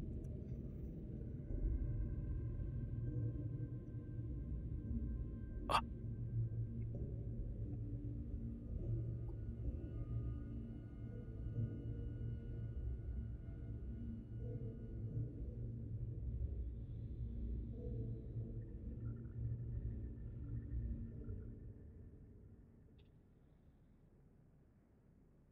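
A spaceship engine hums low and steady, then fades away.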